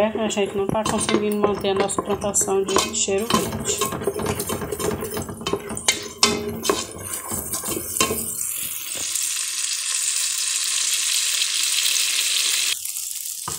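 A wooden spoon scrapes and stirs against a metal pot.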